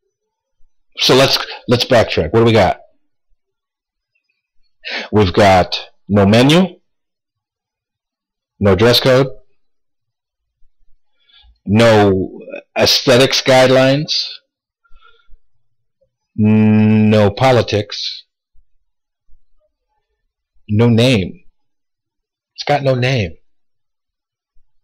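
A man speaks with animation in short bursts with pauses, close to a microphone.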